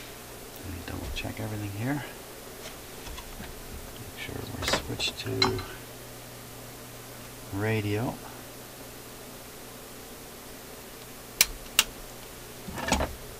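A man speaks calmly close by, with pauses.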